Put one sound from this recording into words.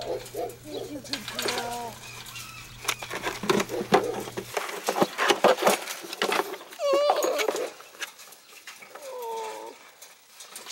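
Puppies whine and yelp close by.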